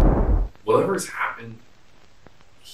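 A man talks briefly close by.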